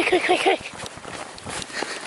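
A dog yelps excitedly close by.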